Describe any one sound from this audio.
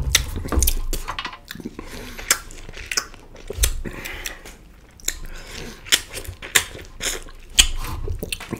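A man chews and crunches food loudly, close to a microphone.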